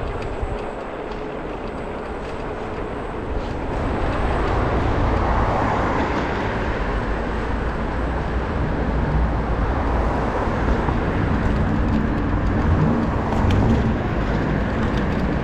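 Tyres roll steadily over asphalt.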